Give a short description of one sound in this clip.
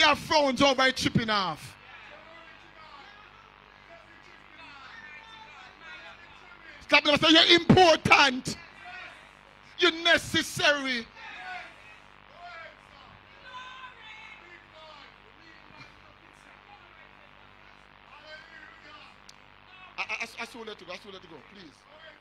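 An elderly man preaches loudly and with animation through a microphone and loudspeakers.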